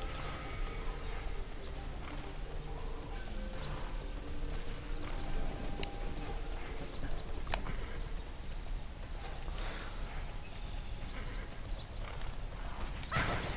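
Hooves clop steadily on a dirt path.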